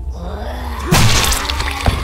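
A gunshot bangs loudly indoors.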